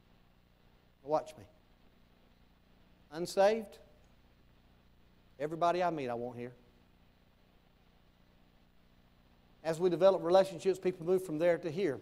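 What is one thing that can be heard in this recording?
A man preaches in bursts through a microphone in a large hall, with pauses between phrases.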